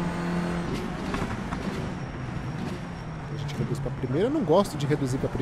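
A racing car engine drones and revs up and down sharply.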